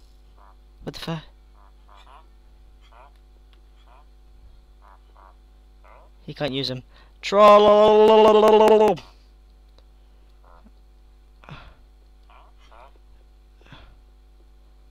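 Game villagers grunt in short, nasal murmurs.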